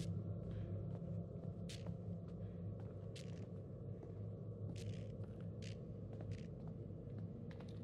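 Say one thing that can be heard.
Footsteps fall on a floor.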